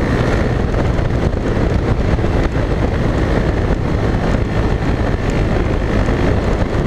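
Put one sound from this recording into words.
Wind roars and buffets loudly past a moving motorcycle.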